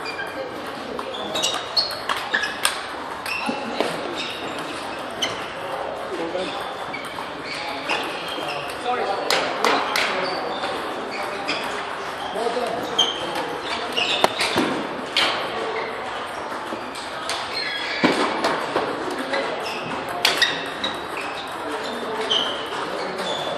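Sneakers squeak on the floor as players move.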